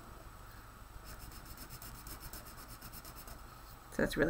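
A marker scratches quickly back and forth on paper.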